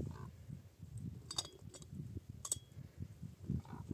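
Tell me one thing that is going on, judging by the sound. A metal pot clinks faintly at a distance.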